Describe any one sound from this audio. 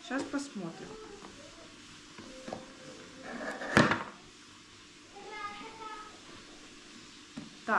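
Cardboard packaging rustles and scrapes as a box is opened.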